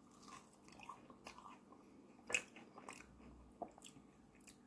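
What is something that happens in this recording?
Fingers tap and click against a plate.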